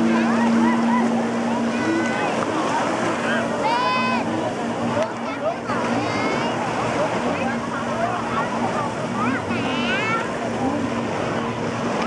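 A jet ski engine drones over the water.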